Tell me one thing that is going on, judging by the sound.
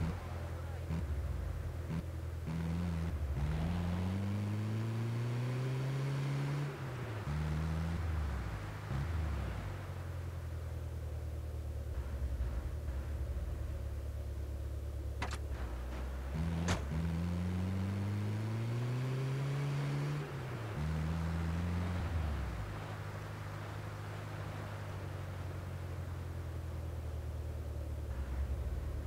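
A vehicle engine drones and revs, rising in pitch as it speeds up.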